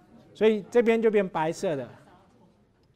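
A man speaks briefly and clearly through a lapel microphone.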